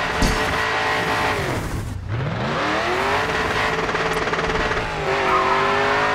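A car engine roars, dips low, then revs up again.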